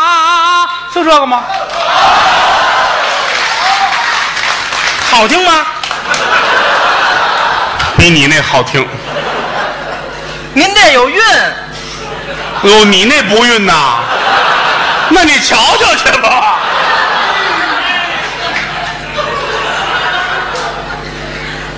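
A large audience laughs and applauds in an echoing hall.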